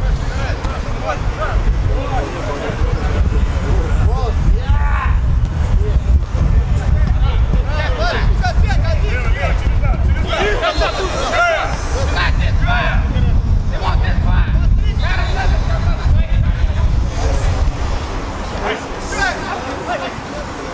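Young men shout to each other across an outdoor field.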